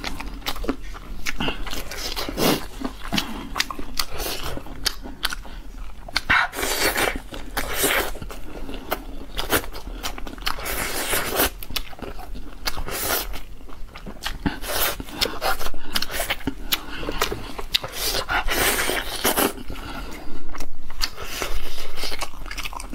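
A young woman chews food loudly and wetly, close to a microphone.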